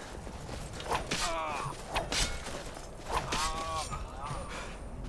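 A man grunts and cries out in pain.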